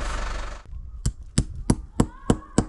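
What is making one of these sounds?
A mallet knocks pegs into the ground in quick, regular blows.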